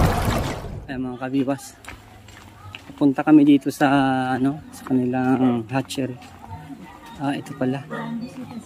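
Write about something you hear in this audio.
An elderly woman speaks casually nearby.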